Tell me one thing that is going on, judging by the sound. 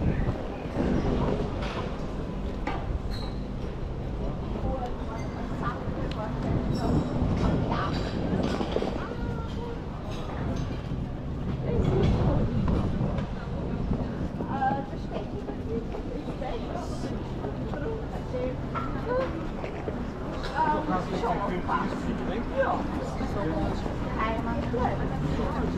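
Footsteps tap on pavement as people walk outdoors.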